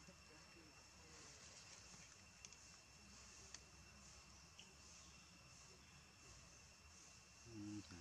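A young monkey nibbles and rustles leaves.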